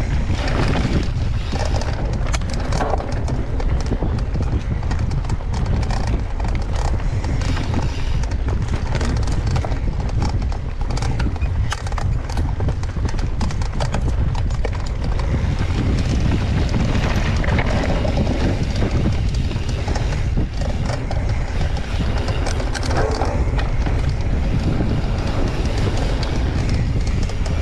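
Wind rushes and buffets past a riding mountain biker.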